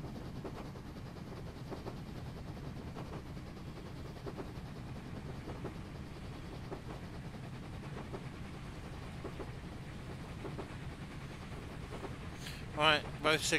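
A steam locomotive rumbles and chuffs steadily along the track.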